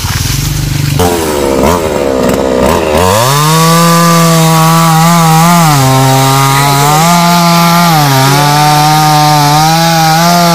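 A chainsaw runs loudly, its engine revving up and down.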